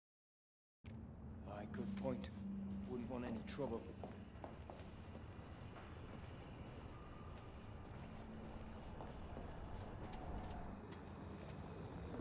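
Footsteps clank on a metal walkway.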